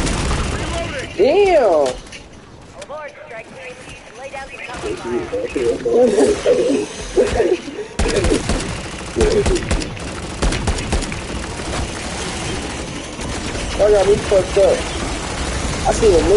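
A young man talks excitedly into a microphone, close by.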